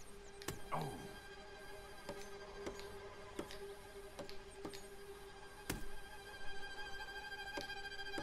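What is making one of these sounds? A knife blade stabs rapidly into a wooden table.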